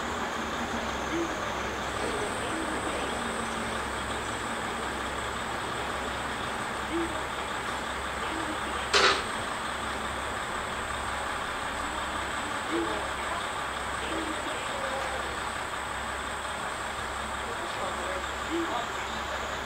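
A diesel train engine idles steadily nearby.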